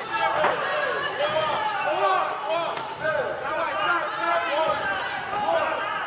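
A kickboxer's bare shin kick thuds against a padded glove and body.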